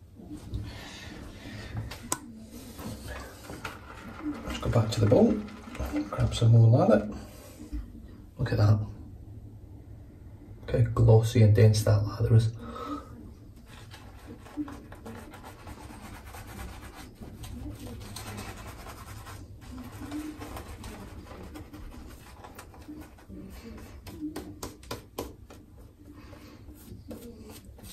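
A shaving brush swishes against skin.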